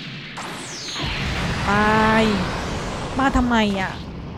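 A huge explosion booms and rumbles.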